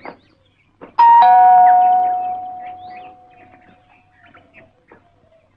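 A doorbell rings and fades.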